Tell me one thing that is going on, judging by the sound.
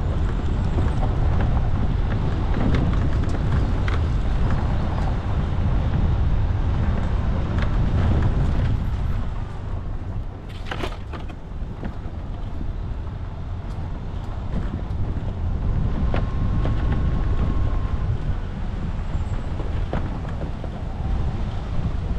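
Tyres crunch and rattle over gravel and stones.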